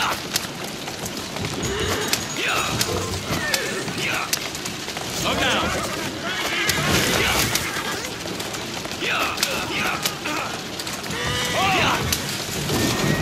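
Carriage wheels rattle and rumble over a stone street.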